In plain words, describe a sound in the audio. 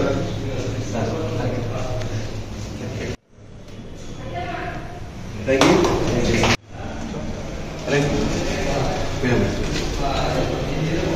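Several men chatter and laugh nearby.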